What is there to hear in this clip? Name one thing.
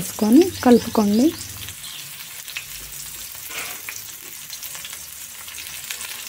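Chopped chillies drop into a pan.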